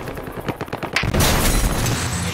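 Glass shatters with a loud crash.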